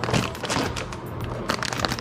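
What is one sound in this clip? Microwave keypad buttons beep as they are pressed.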